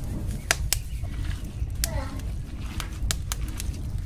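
Hands squish and knead soft minced meat.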